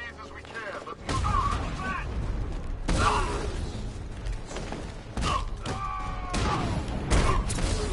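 Punches and blows land hard in a fast brawl.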